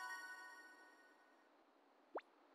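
A bright chiming jingle rings and fades.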